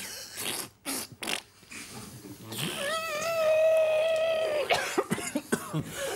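A man makes short, sharp bursts of sound effects with his mouth.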